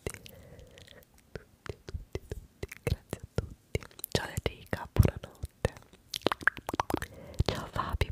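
A young woman whispers softly into a close microphone.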